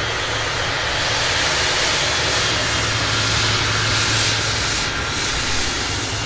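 A jet engine's high whine swells and then eases.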